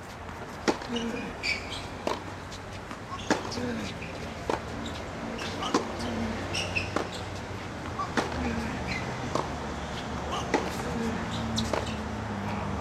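A tennis ball is struck with a racket, with sharp pops again and again.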